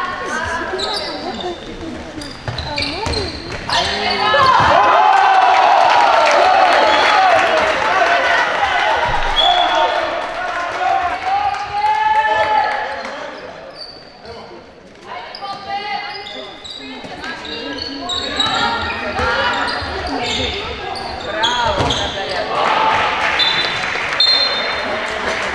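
Young girls shout and call out in a large echoing hall.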